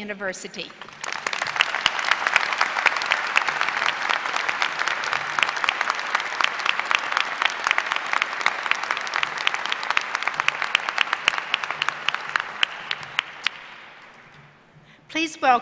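A large crowd applauds in a large hall.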